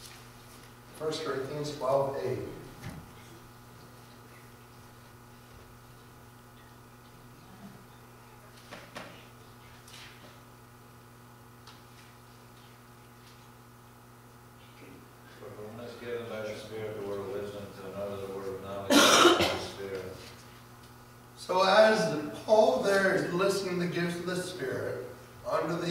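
A man speaks through a microphone in an echoing room, pausing often.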